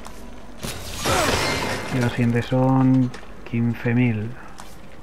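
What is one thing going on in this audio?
A game menu chimes with short musical tones as an upgrade is bought.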